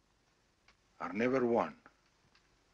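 A man speaks calmly into a phone.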